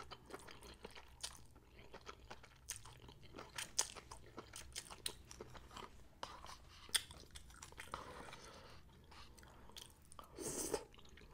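A woman chews wetly close to a microphone.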